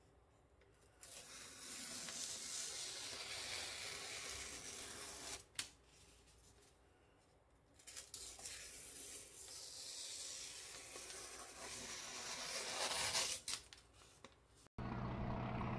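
A kitchen knife slices through newspaper with a rasping sound.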